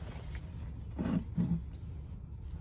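A wooden board knocks and scrapes against a shelf as it is handled.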